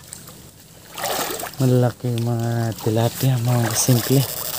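Water splashes as a man wades through a shallow stream.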